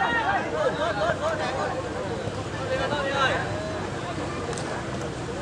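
A crowd of spectators murmurs and calls out in the distance.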